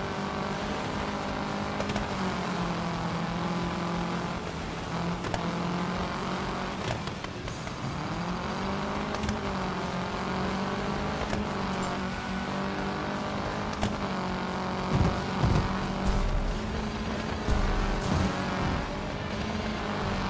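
A rally car engine roars at high revs, shifting gears as it speeds along.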